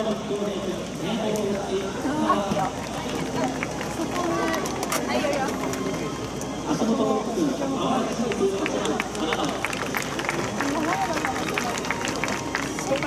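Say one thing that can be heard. A large crowd of voices chatters and calls out at a distance, heard outdoors.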